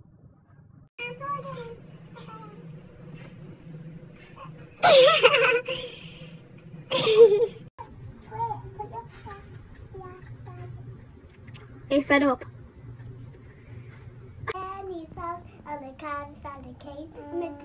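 A young girl talks and squeals playfully close by.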